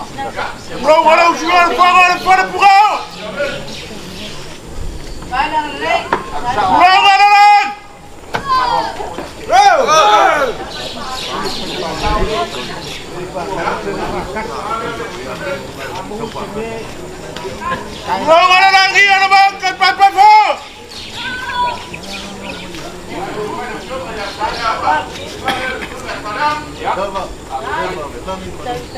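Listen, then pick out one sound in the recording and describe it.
A crowd of men murmurs and talks quietly in the background.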